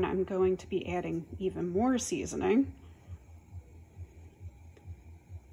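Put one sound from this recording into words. A spatula scrapes softly against a pan.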